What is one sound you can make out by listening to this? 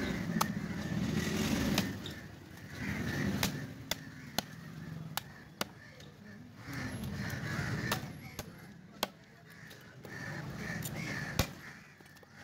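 A heavy cleaver chops through fish on a wooden block with sharp thuds.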